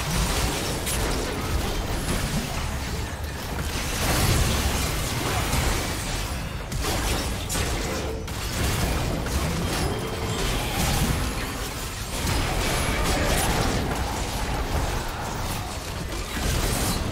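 Spell effects whoosh and burst in a busy game battle.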